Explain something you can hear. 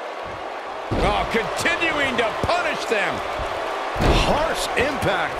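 Heavy thuds land on a wrestling ring mat.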